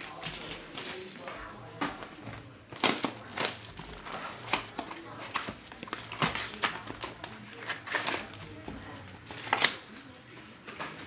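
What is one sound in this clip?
Foil card packs crinkle and rustle.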